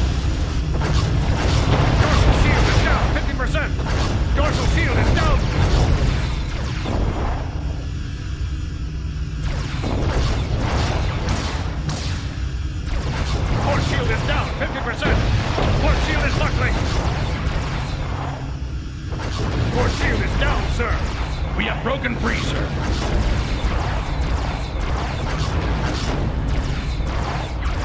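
Energy weapons fire in loud zapping bursts.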